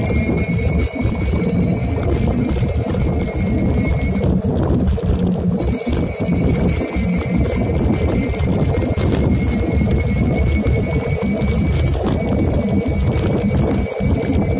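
Wind rushes and rumbles loudly and steadily.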